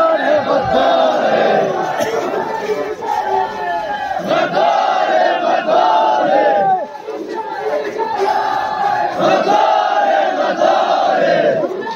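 A large crowd of men chants slogans loudly together outdoors.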